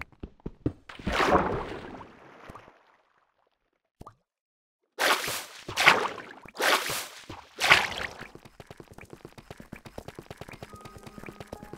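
Water splashes and bubbles.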